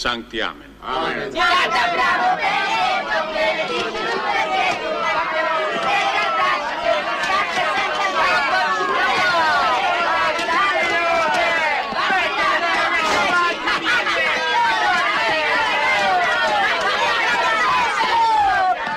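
A large crowd shouts and jeers loudly outdoors.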